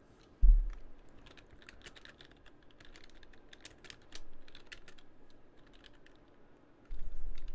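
Keyboard keys click quickly as someone types.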